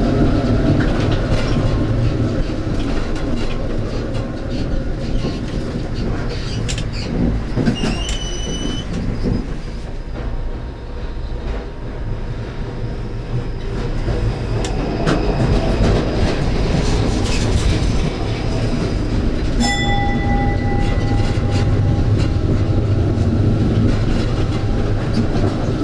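A tram rumbles steadily along rails.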